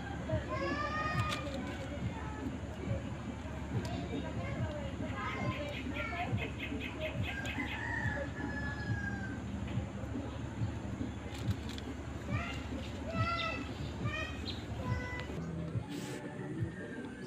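Plastic sheeting crinkles and rustles close by as hands work with it.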